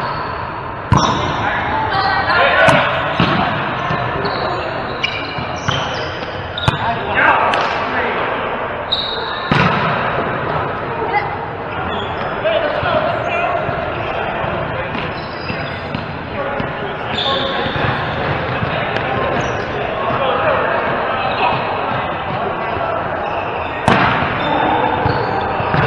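Adult players call out and talk in an echoing hall.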